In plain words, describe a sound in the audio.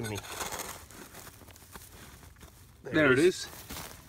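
A metal trowel scrapes and digs into dry soil.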